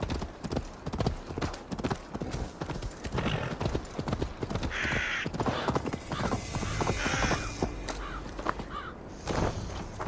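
A horse's hooves thud on snowy ground.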